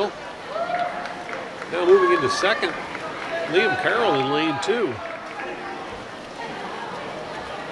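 Swimmers splash steadily through the water in a large echoing hall.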